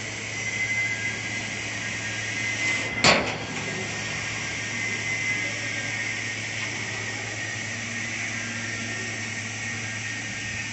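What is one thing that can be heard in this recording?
A fiber laser cutter hisses as it cuts through thick steel plate.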